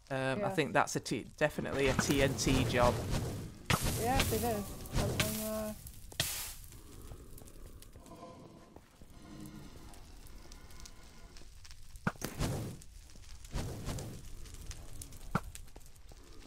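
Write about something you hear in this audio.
A bow twangs as arrows are shot.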